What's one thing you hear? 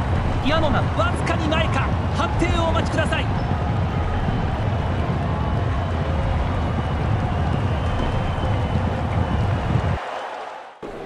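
Horses' hooves drum loudly on turf as a race gallops past.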